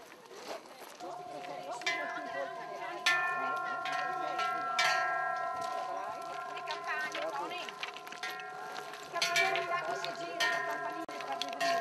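Large cowbells clang and ring loudly with each step.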